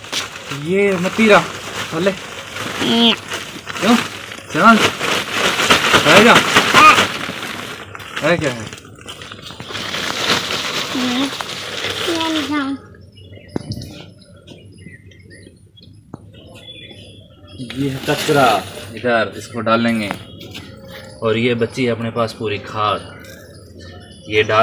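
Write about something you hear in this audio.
A child talks with animation close by.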